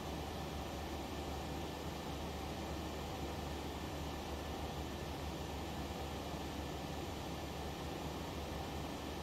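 Jet engines drone steadily, heard from inside a cockpit.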